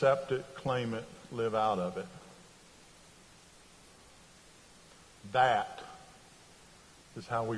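A middle-aged man speaks slowly with pauses through a microphone in a large echoing hall.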